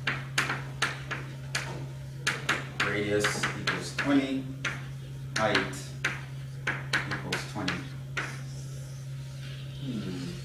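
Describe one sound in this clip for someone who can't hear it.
Chalk taps and scrapes sharply on a blackboard.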